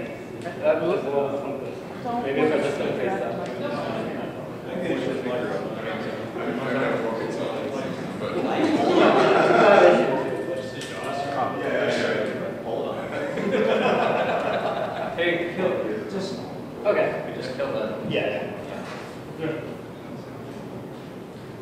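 A young man speaks with animation through a microphone in a large echoing hall.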